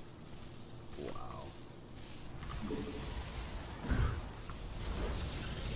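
Electronic sound effects chime and whoosh in short bursts.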